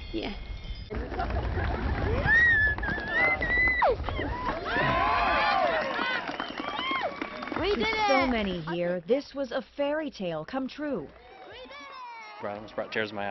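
A crowd of guests cheers and whoops loudly nearby.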